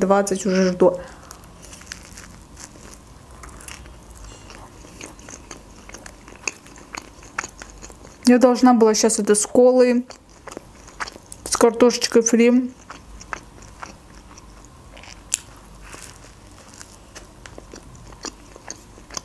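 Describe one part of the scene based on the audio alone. A young woman chews food with crunching, smacking sounds close to a microphone.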